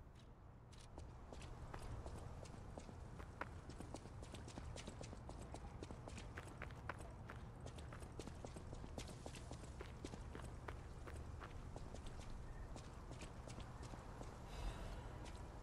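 Footsteps run quickly over cobblestones.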